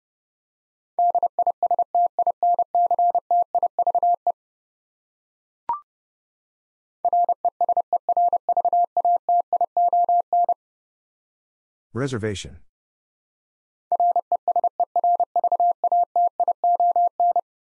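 A Morse code key sends rapid beeping tones in short and long bursts.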